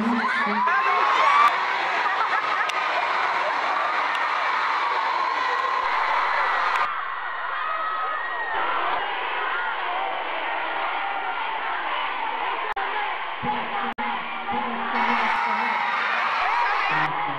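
A crowd screams and cheers in a large hall.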